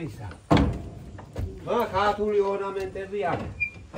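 A wooden door creaks open.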